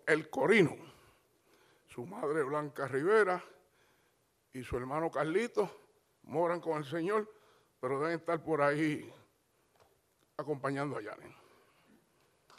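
A man speaks with animation over a loudspeaker in a large echoing hall.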